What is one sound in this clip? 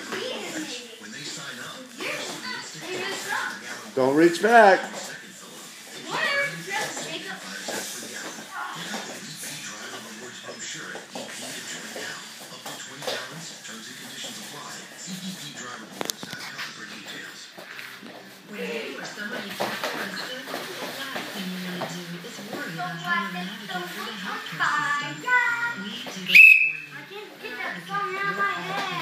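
Young boys wrestle, with bodies thudding and scuffling on a padded mat.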